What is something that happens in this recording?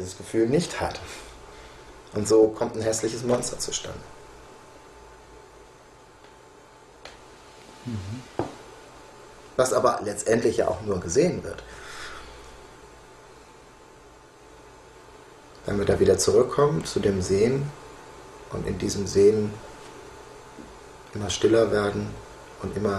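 A middle-aged man speaks calmly close to a microphone, with pauses.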